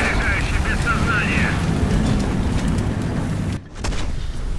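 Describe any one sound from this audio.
Flames crackle and roar from a burning tank.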